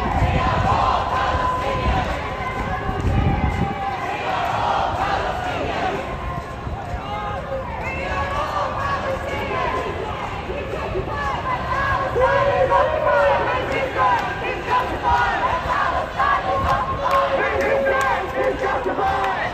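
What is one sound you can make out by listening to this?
Many voices murmur and talk nearby in a crowd.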